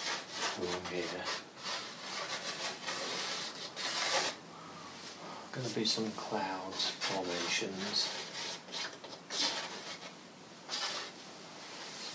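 Chalk scratches across a board.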